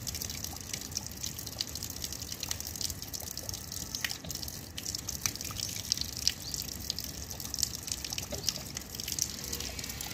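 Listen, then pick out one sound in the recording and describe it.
Water splashes steadily from a tap onto wet stone.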